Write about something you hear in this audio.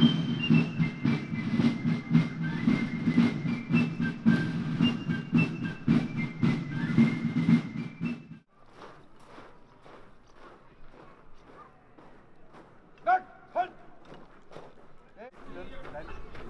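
Boots tramp in step on gravel as a column of soldiers marches.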